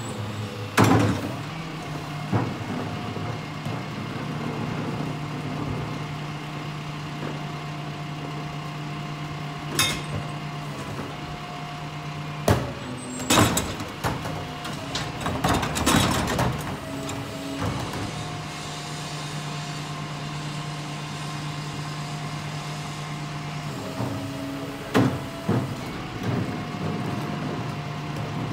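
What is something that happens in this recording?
A garbage truck engine idles with a steady hum nearby.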